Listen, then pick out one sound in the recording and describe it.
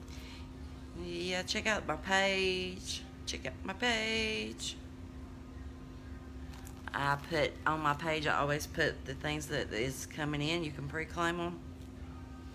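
A middle-aged woman speaks close to a phone microphone, calmly and in short bursts.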